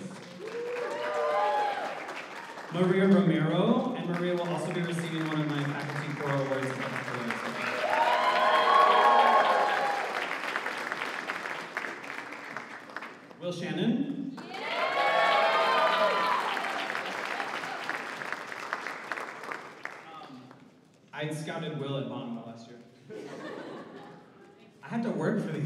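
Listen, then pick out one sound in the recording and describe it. A man speaks into a microphone over a loudspeaker.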